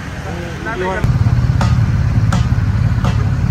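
Motorcycle engines rumble on the road.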